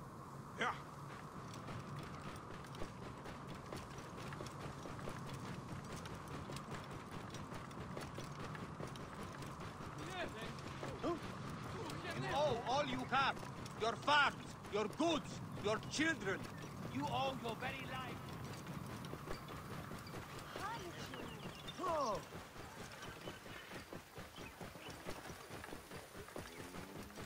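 A camel's hooves thud steadily on sand.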